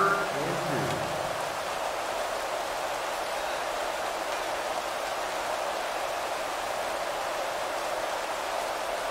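A large crowd murmurs and roars steadily in a stadium.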